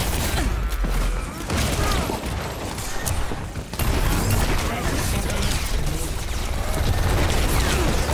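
Game explosions and effects boom and crackle.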